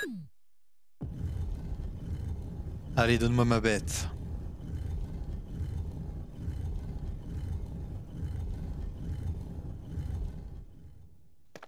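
A heavy stone statue rumbles and grinds as it slowly turns.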